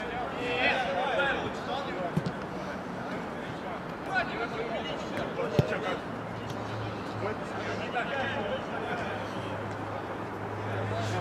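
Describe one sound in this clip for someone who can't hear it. Men shout to each other outdoors across an open field.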